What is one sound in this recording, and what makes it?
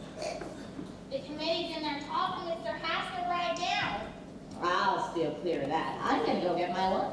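A young woman speaks with animation on stage, heard across a hall.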